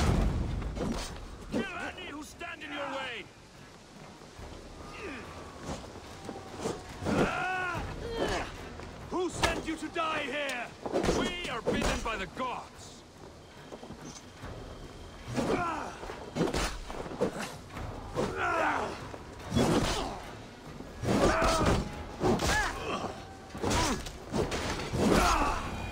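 Blades clash and strike in short, sharp hits.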